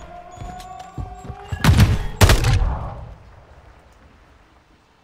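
Gunshots crack loudly and echo away.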